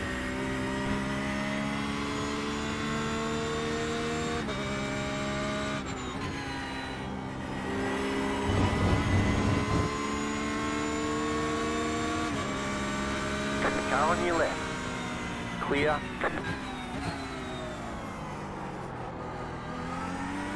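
A race car engine roars loudly, its pitch climbing and dropping with each gear change.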